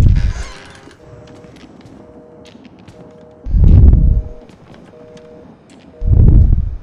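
A telephone rings with a repeated electronic trill.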